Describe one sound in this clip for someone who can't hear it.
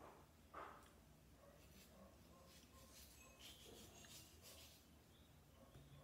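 A knife scrapes as it peels the skin from a mango.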